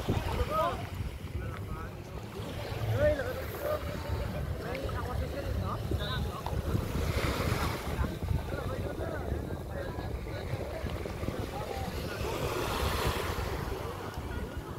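Several children shout and chatter playfully in the water nearby.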